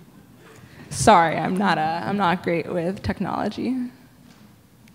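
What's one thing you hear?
A young woman speaks with animation into a microphone, close and loud.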